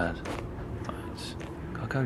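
Footsteps crunch quickly on snow.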